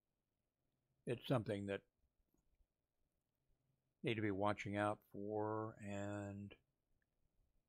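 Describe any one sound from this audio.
A middle-aged man speaks into a close microphone, calmly reading out.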